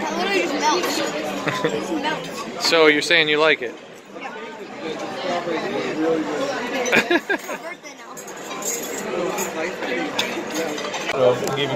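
Voices chatter in a busy room.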